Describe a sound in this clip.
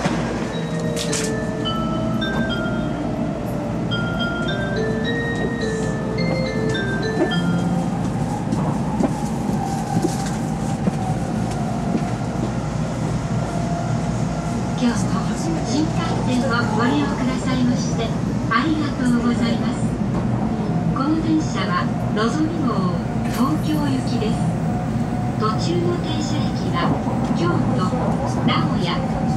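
A train rumbles and hums steadily while travelling.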